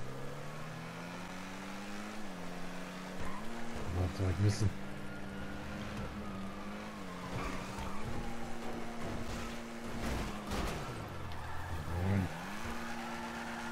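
A car engine roars steadily, rising and falling in pitch as the gears shift.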